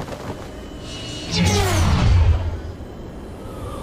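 A jet aircraft roars past overhead.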